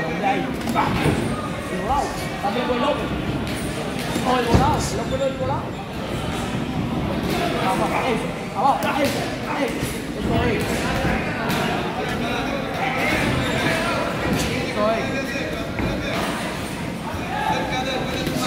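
Boxing gloves thud in quick punches.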